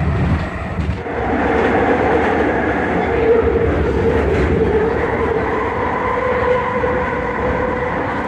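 A train hums and rumbles steadily as it travels along the track.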